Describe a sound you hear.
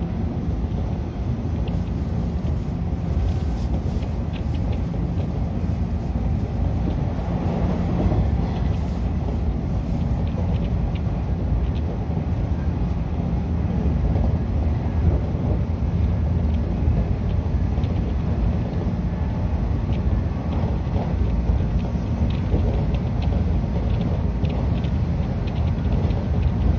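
A train rumbles steadily along the tracks from inside a carriage.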